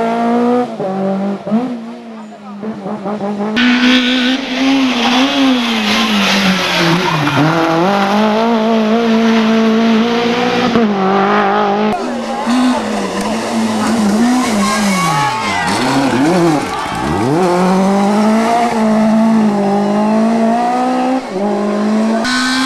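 A rally car engine revs hard and roars past.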